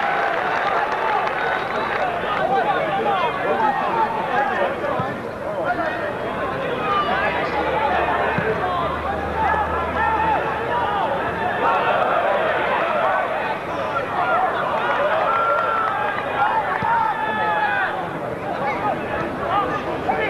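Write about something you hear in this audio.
A football crowd murmurs and shouts outdoors.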